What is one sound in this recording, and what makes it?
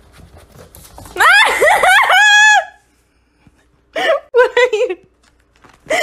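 A kitten meows.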